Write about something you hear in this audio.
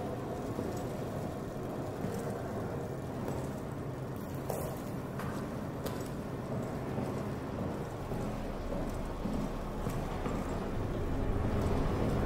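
Slow footsteps creak on a wooden floor.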